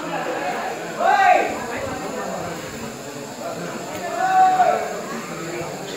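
A man shouts out loud nearby.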